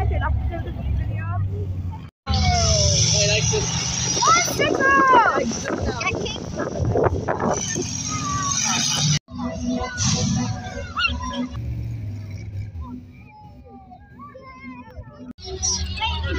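Children talk excitedly close by.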